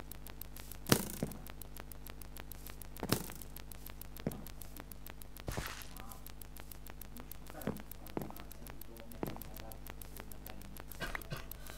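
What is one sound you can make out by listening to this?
Blocks thud softly as they are placed one by one.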